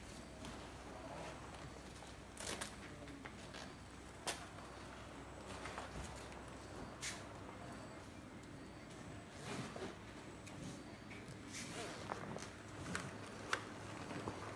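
A plastic protective suit rustles and crinkles as a person puts it on.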